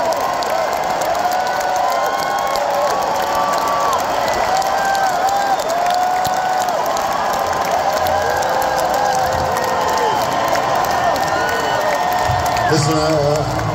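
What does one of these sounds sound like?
A large crowd sings together loudly in a big echoing hall.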